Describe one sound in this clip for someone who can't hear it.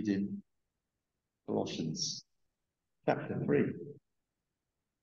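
An older man speaks calmly in short phrases through a small microphone over an online call.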